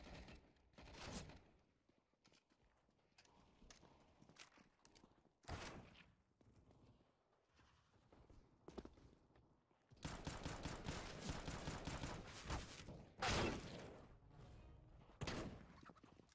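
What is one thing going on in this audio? Pistol shots crack sharply, one at a time.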